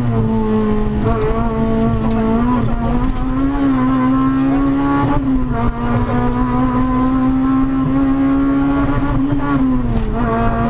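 A car engine roars loudly from inside the cabin, revving up and down as the car speeds along.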